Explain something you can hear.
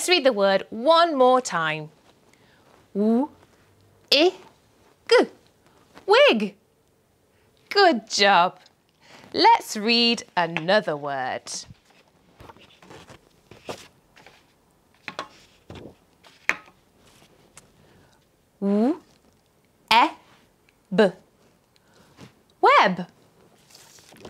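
A young woman speaks clearly and slowly into a close microphone, sounding out short words.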